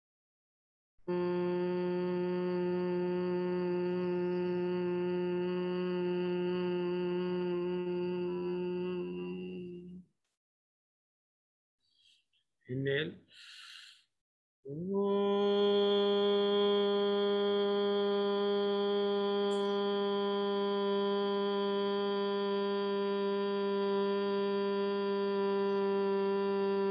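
An elderly man chants a long, steady, deep tone close by.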